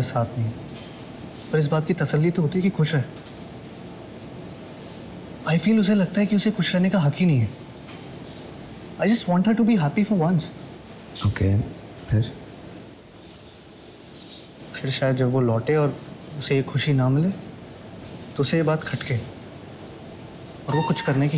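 A young man speaks calmly and earnestly at close range.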